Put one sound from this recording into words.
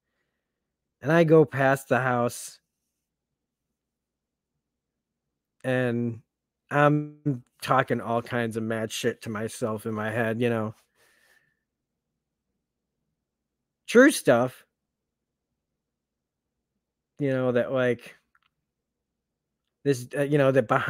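A man speaks calmly in short bursts through an online call microphone.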